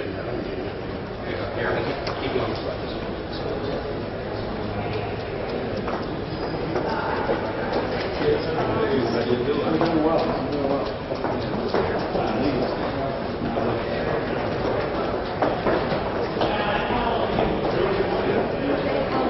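Footsteps click on a hard floor.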